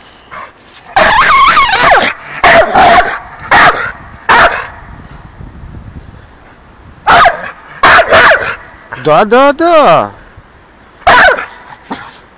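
A dog barks loudly and excitedly up close.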